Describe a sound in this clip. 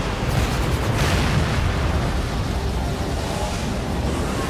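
A huge explosion booms.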